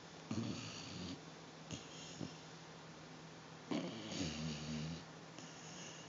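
A dog whimpers and groans softly in its sleep, close by.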